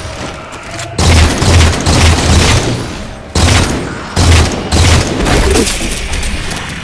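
Heavy gunfire and explosions boom in loud bursts.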